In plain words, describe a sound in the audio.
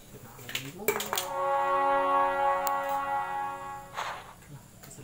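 A short game fanfare plays as a round begins.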